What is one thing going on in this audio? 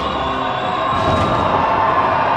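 A heavy truck crashes down onto its wheels with a thud.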